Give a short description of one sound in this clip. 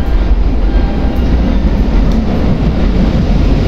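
A train rumbles in and grows louder as it approaches.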